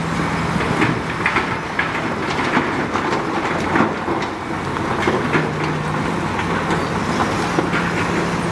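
Soil and rocks slide and tumble out of a tipping truck bed.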